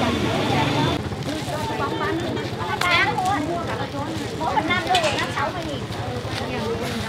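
Several women chatter and call out nearby.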